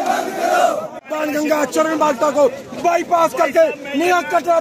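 A middle-aged man shouts forcefully close by.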